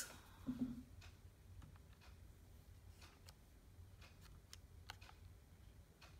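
Calculator buttons click softly as they are pressed.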